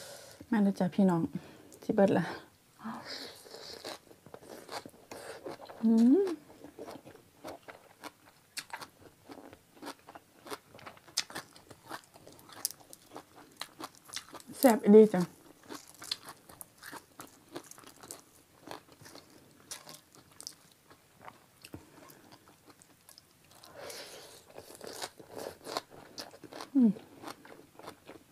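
A young woman chews and smacks her lips close to a microphone.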